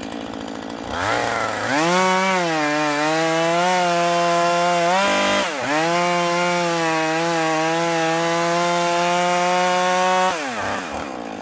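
A chainsaw revs loudly and cuts through wood, its pitch wavering under load.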